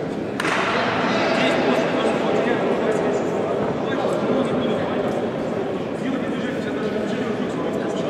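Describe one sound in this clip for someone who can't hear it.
Young men talk to one another in a huddle.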